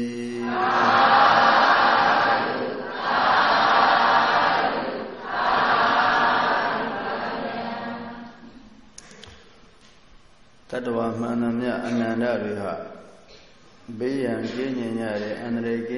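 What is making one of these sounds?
An elderly man recites slowly into a microphone, pausing between phrases.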